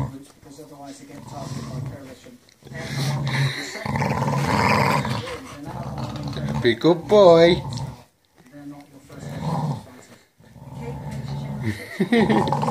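Dogs scuffle and thump on a soft couch.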